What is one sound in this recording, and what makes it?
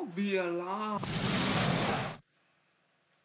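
Fire spells roar in bursts.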